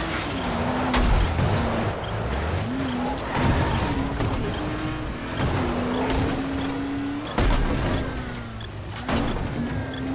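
Heavy thuds hit against a vehicle.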